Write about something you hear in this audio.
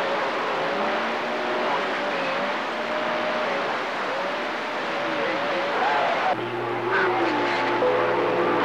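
Warbling, whistling tones come through a radio receiver's static.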